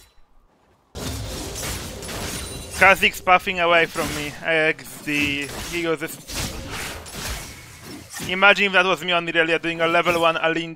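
Video game battle sounds clash and crackle.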